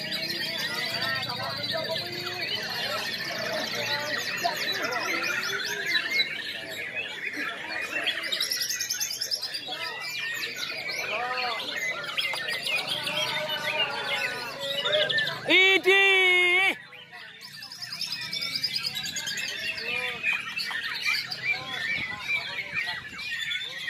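Many caged white-rumped shamas sing loud, varied songs at once outdoors.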